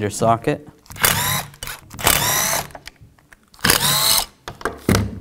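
A screwdriver pries and squeaks against a plastic housing.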